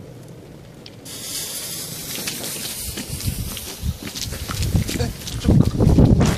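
A lit fuse sputters and hisses up close.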